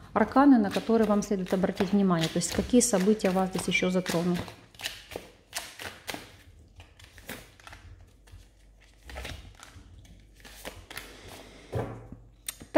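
Playing cards riffle and slap together as they are shuffled.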